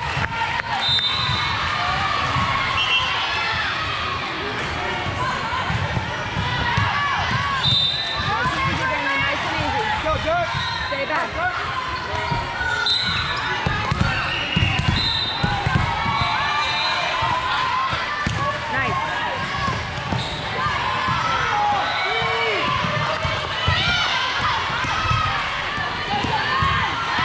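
A crowd of girls and spectators chatters and cheers, echoing through a large hall.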